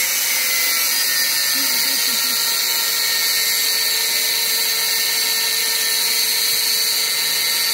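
An electric welder crackles and hisses steadily up close.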